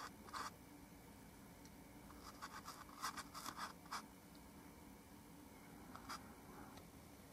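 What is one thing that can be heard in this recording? A paintbrush softly dabs and strokes on canvas.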